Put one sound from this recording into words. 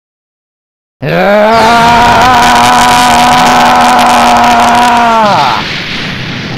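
A roaring energy blast rumbles loudly and then fades.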